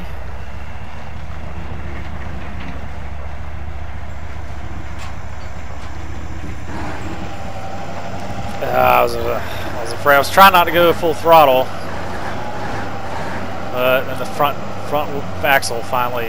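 A heavy truck engine rumbles low and steady.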